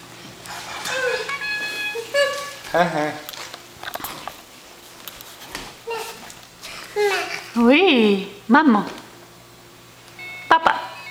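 A toy plays short electronic tunes.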